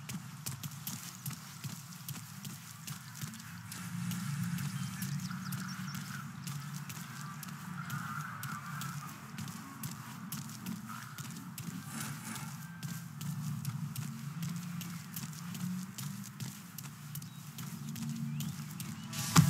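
Footsteps run and patter quickly on hard pavement.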